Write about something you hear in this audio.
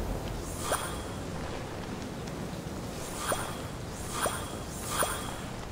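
A short bright chime rings out several times.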